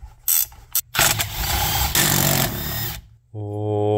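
A cordless impact driver whirs and hammers as it drives a bolt.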